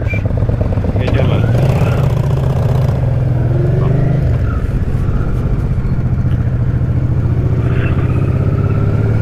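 A motorcycle engine revs up as the motorcycle pulls away.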